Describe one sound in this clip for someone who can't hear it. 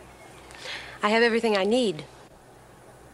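A woman speaks warmly, close by.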